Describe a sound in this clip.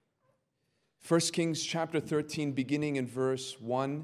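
A young man speaks calmly into a microphone, heard through a loudspeaker in a large room.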